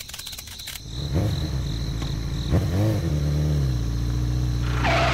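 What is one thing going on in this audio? A small toy motorbike engine hums and revs.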